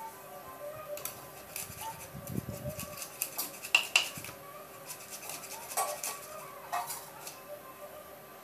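Fish scales scrape and crackle against a fixed curved blade.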